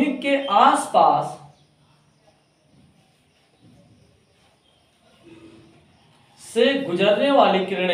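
A young man speaks calmly and clearly nearby, pausing between phrases.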